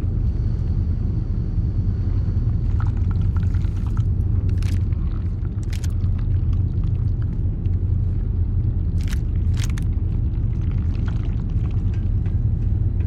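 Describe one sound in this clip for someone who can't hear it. A low, steady mechanical hum drones throughout.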